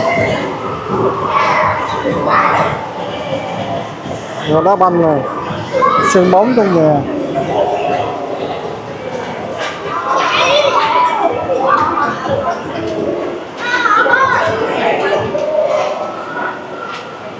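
A crowd of people chatters throughout a large, echoing hall.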